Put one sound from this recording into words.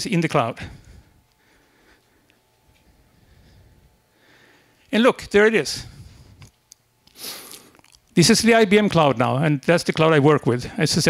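A man speaks with animation into a microphone in a room with slight echo.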